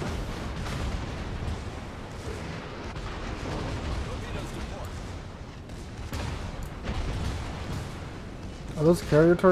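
Heavy guns boom in deep rumbling bursts.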